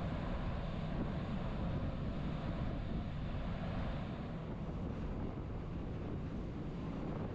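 Wind rushes steadily across a ship's open deck.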